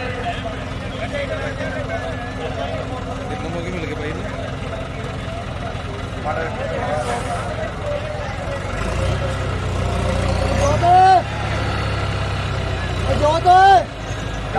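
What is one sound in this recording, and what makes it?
A crowd of men chatters outdoors.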